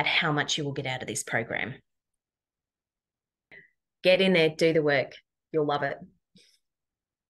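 A woman talks calmly into a nearby microphone, heard as if over an online call.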